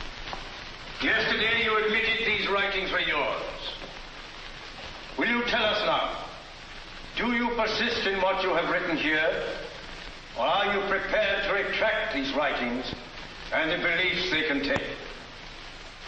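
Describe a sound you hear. A man speaks loudly and solemnly in a large echoing hall.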